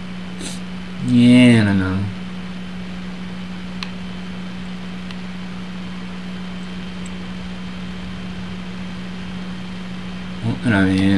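A young man speaks briefly and calmly into a microphone.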